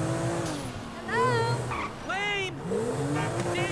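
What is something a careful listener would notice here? Tyres screech on the road.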